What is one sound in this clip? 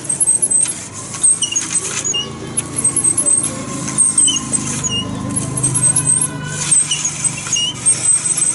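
A grinding wheel whirs and rumbles steadily.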